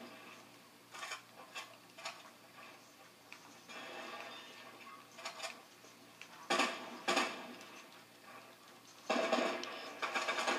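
Building pieces in a video game snap into place with sharp knocks.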